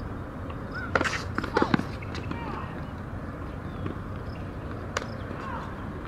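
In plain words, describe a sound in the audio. A tennis ball bounces sharply on a hard court outdoors.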